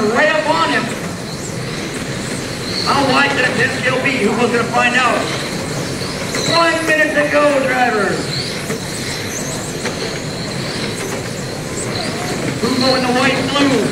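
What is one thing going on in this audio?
A man talks loudly through a loudspeaker in a large echoing hall.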